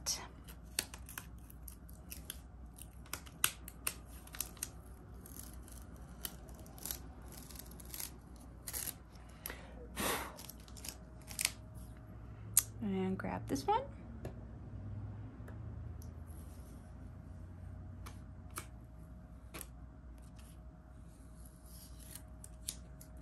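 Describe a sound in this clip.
Small taps and clicks sound as hands place pieces on a board.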